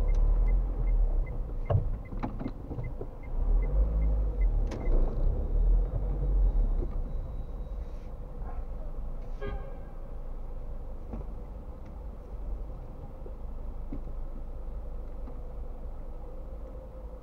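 A car engine hums low inside the cabin while driving in traffic.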